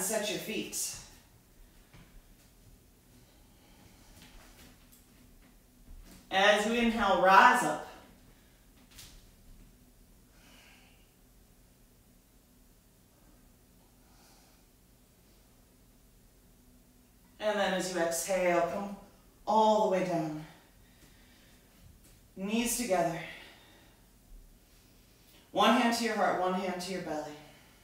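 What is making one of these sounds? A young woman speaks calmly and clearly, close by, in short phrases with pauses.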